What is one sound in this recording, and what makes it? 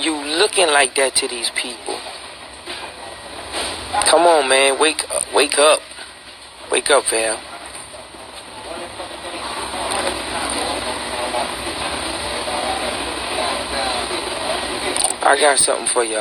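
A man speaks calmly and closely into a phone microphone.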